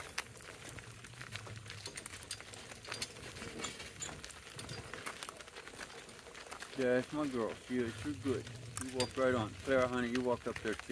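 Cart wheels crunch over gravel.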